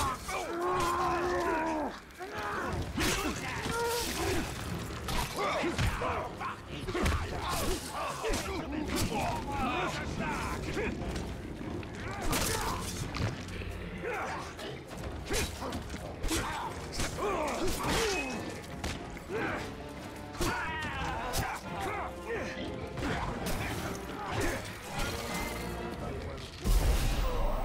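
Swords clash and strike in quick blows.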